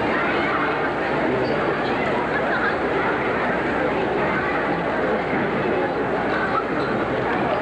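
A large crowd murmurs steadily in a big echoing hall.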